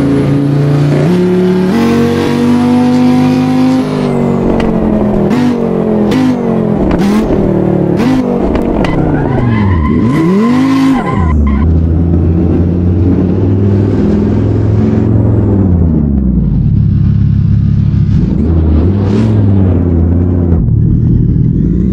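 A car engine revs hard, rising and falling in pitch as gears shift.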